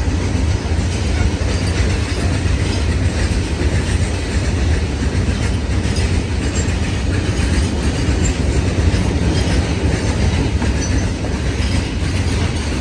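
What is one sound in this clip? Steel wheels clatter rhythmically over rail joints.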